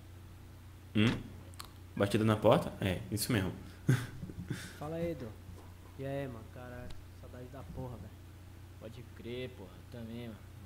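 A young man speaks casually and close into a microphone.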